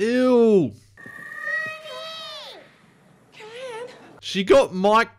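A woman shouts frantically.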